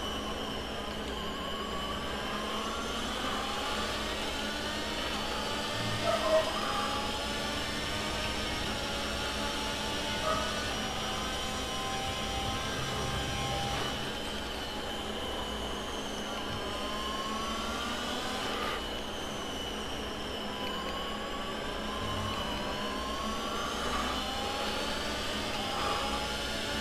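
A racing car engine screams, rising in pitch through quick gear changes and dropping when braking.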